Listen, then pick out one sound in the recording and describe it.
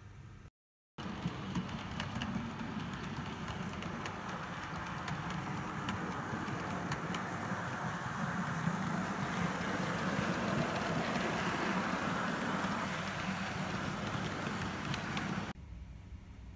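A model train rumbles steadily along the track.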